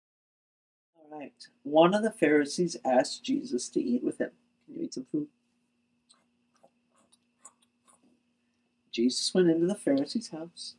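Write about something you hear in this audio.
A man reads aloud calmly close by.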